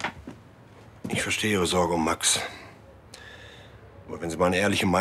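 A middle-aged man speaks in a low, serious voice close by.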